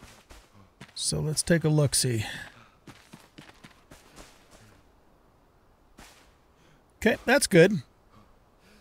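An elderly man talks with animation into a close microphone.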